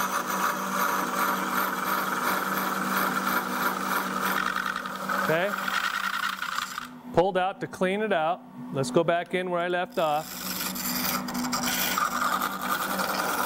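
A chisel scrapes and shaves spinning wood.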